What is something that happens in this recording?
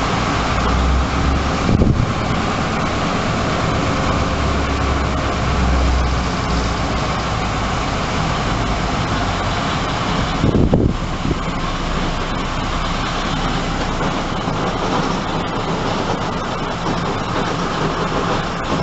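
Train wheels rattle over the rails.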